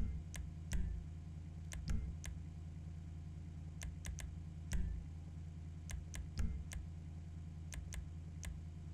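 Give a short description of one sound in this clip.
Short, sharp menu clicks sound again and again.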